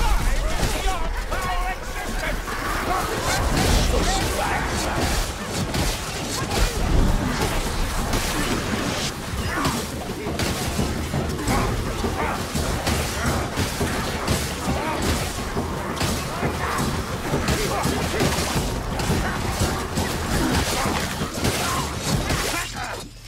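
Blades slash and thud against enemies in a fast melee fight.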